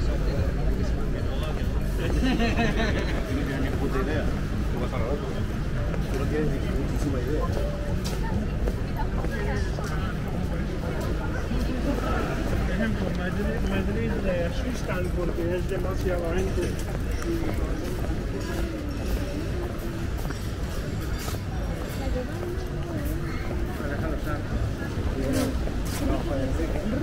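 Footsteps tap on paving close by.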